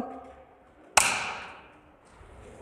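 A pistol fires a single sharp shot that echoes through a large hall.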